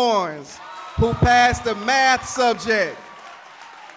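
A man speaks loudly through a microphone in an echoing hall.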